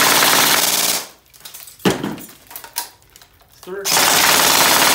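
A magazine clicks into an airsoft rifle.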